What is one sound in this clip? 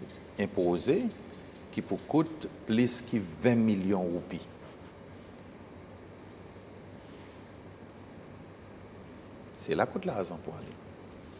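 An older man speaks calmly and with emphasis, close to a microphone.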